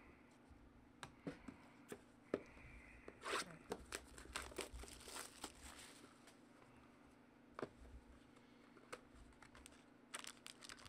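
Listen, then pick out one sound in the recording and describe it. Cardboard boxes tap and knock together as they are handled.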